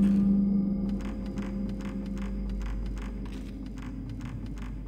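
Footsteps thud quickly on wooden floorboards.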